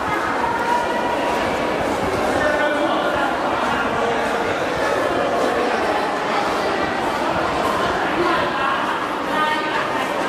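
A crowd of people chatter and call out, echoing in a large hall.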